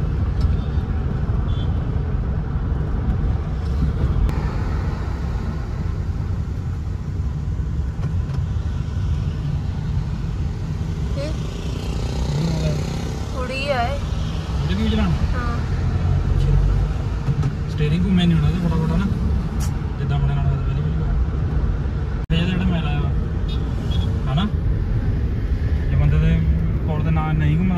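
A car engine hums steadily as tyres roll over the road.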